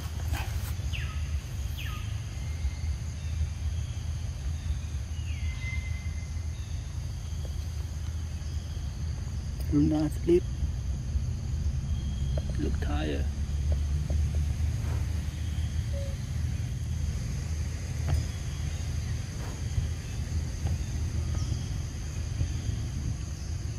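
Monkeys rustle through dry leaves on the ground.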